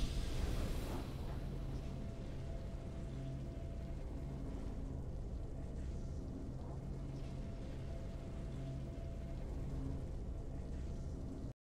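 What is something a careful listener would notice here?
Calm, steady game music plays.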